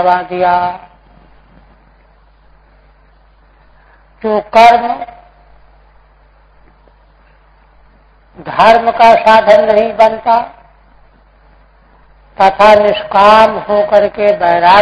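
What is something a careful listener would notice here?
An elderly man speaks calmly through a microphone, with long pauses between phrases.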